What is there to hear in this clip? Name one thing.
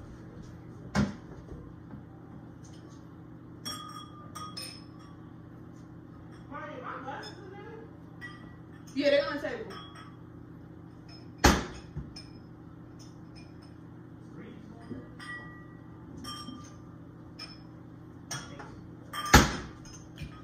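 Cabinet doors bang shut with sharp knocks.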